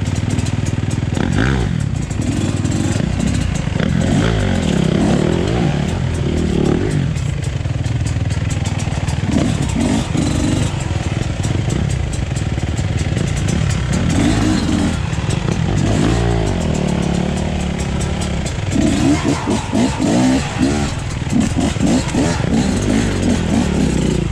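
A dirt bike engine idles and revs close by.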